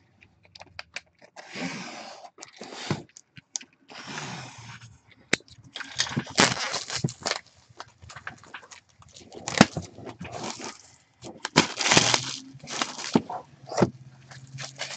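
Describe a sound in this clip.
Fingers tap and scrape on a cardboard box.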